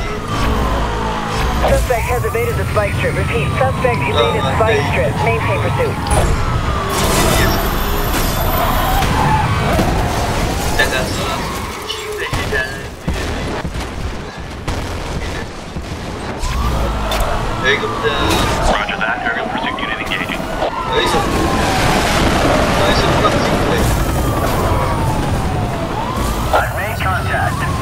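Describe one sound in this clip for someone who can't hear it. A race car engine roars at high speed.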